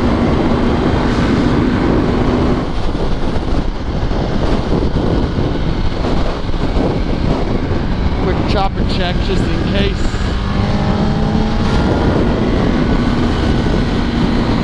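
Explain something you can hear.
A motorcycle engine hums and revs, rising and falling in pitch.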